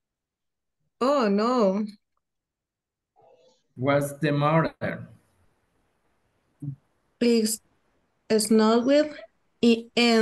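A woman speaks slowly and clearly over an online call.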